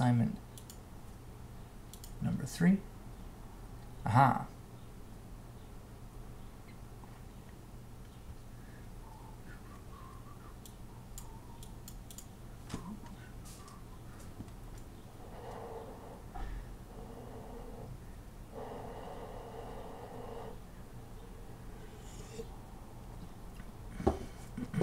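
A young man speaks briefly and calmly into a nearby microphone.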